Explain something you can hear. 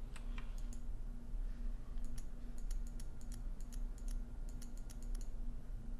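A combination lock's dial clicks as it turns.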